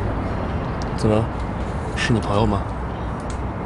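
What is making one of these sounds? A young man asks something quietly.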